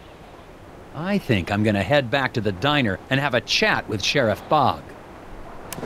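A man talks calmly at close range.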